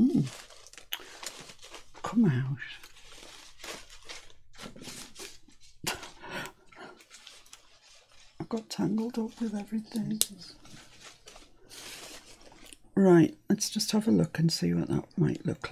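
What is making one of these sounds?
Paper and trim rustle under hands.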